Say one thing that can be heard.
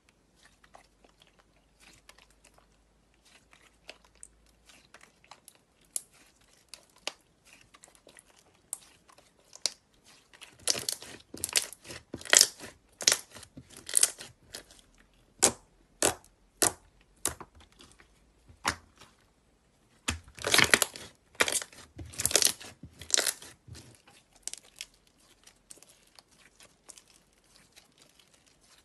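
Sticky slime squishes, pops and crackles as hands squeeze and stretch it.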